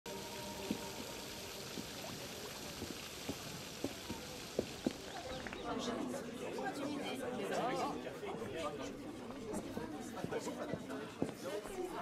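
Footsteps walk steadily over stone.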